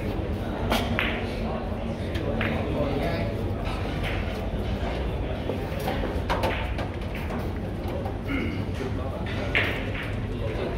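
Billiard balls click against each other and knock off the cushions.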